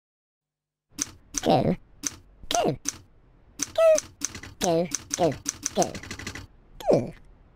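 Typewriter keys clack in quick, uneven strikes.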